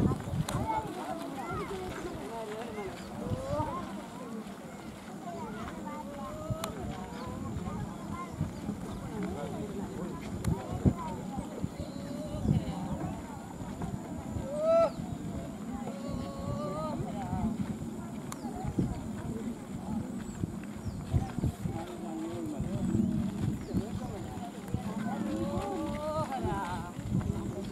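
A group of men and women chatter nearby.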